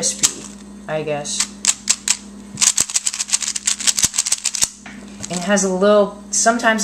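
Plastic cube pieces click and clatter rapidly as they are turned.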